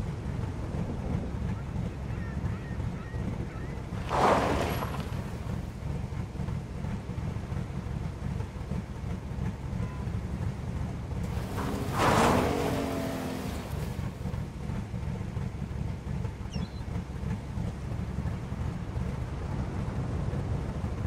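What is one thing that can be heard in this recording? A truck engine rumbles low and steadily.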